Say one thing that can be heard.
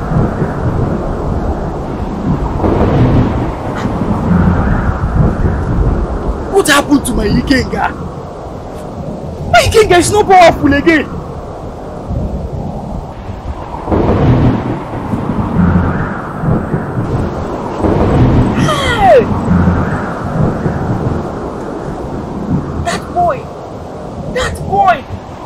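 A man speaks loudly and forcefully nearby.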